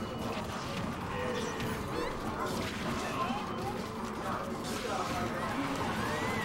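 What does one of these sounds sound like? Video game fighters clash with rapid hits and blasts.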